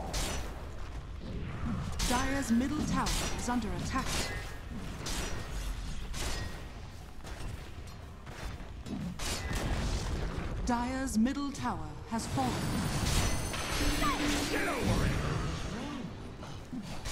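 Magic spells burst and weapons clash in a fast fantasy battle.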